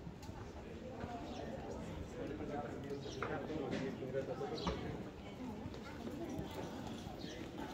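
A few adults talk softly nearby.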